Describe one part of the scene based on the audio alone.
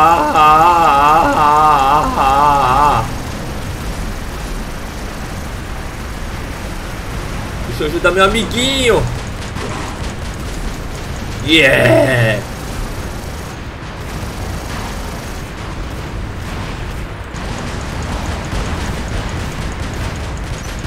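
A giant robot walks with heavy metallic stomps.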